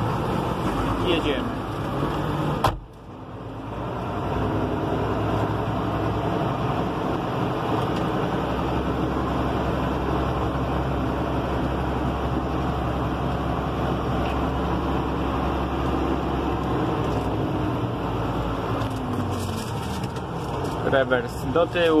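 A tractor engine rumbles steadily from the driver's seat.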